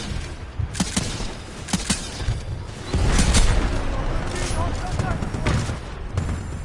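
Rapid gunshots crack sharply.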